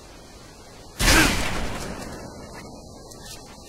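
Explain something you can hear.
A loud explosion bursts and then rumbles away.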